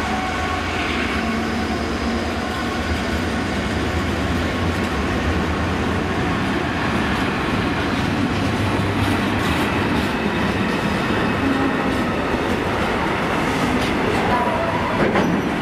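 Freight wagons clatter and rumble steadily along the rails.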